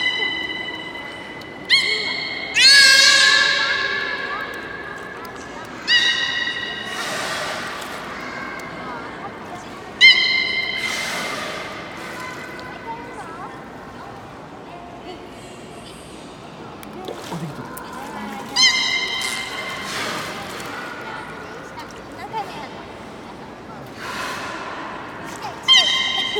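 A beluga whale makes high whistling and chirping calls.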